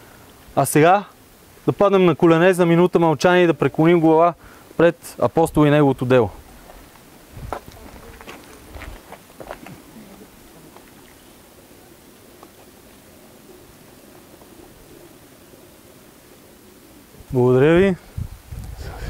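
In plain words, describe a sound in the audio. A man speaks loudly and clearly close by.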